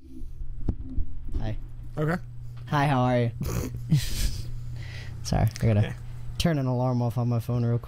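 A second young man talks and laughs through a microphone.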